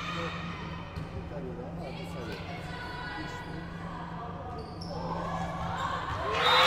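Young women players call out to each other across the court.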